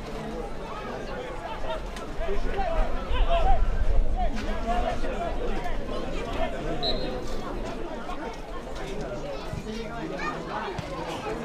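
A crowd of spectators shouts and cheers outdoors, swelling loudly for a few seconds.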